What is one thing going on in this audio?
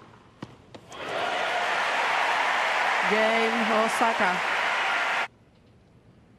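A large crowd cheers and applauds loudly, then stops abruptly.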